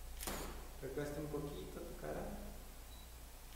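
A man speaks quietly nearby.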